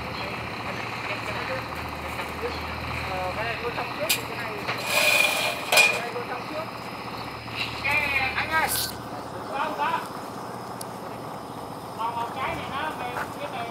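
Men scrape and thump a plastic water tank as they shift it on a truck bed.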